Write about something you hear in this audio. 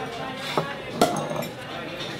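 A plate clinks on a table.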